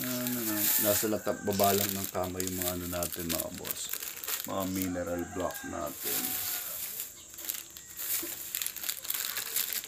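Stones clatter in a plastic basket.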